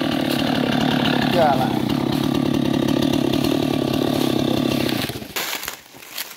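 A chainsaw engine runs loudly and steadily.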